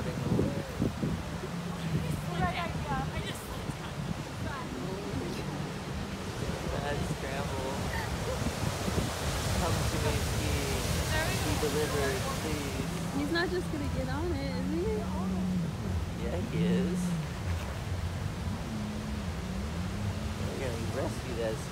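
Waves crash and wash over stones on a shore.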